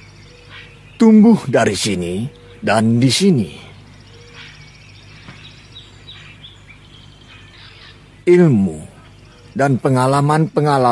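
A group of men chant loudly together in unison.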